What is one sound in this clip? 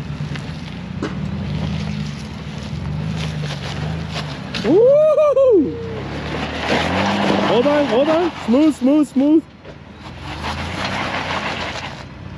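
An engine rumbles low and strains as an off-road vehicle crawls up over rocks.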